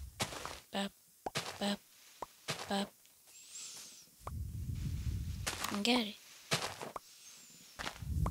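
Dry hay crunches as blocks are broken.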